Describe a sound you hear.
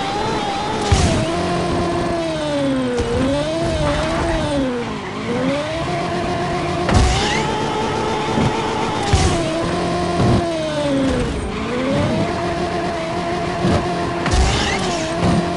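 A racing car thuds and bangs against rocks.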